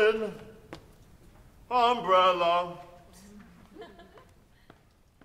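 A young woman sings in a strong operatic voice in an echoing hall.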